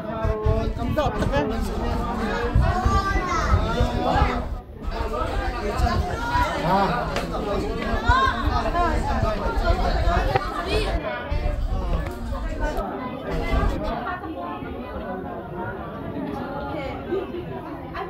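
Many children chatter and shout loudly in an echoing room.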